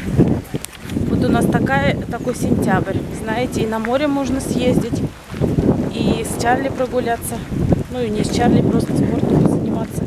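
A woman talks close to the microphone.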